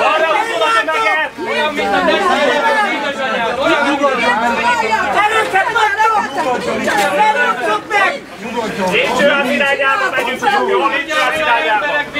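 A crowd of men shout and argue loudly up close.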